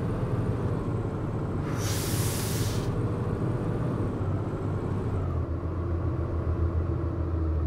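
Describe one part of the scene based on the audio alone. An articulated diesel city bus engine drones as the bus drives along.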